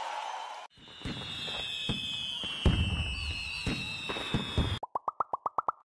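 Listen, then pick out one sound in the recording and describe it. Fireworks pop and crackle.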